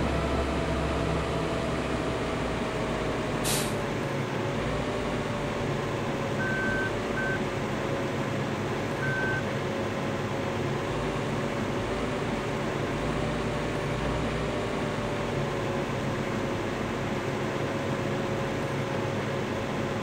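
A combine harvester's engine drones steadily while it harvests.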